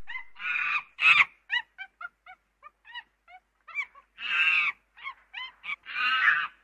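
A chimpanzee screams and hoots loudly, close by.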